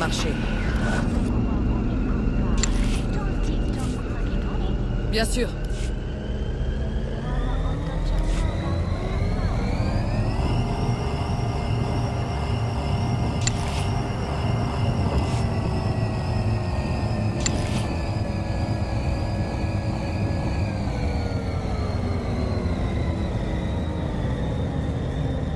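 A flying craft's engine hums steadily, rising in pitch, holding, then slowly dropping again.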